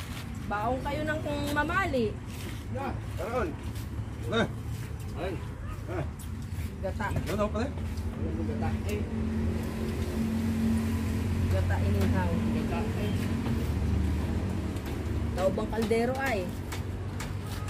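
Young men talk casually nearby, outdoors.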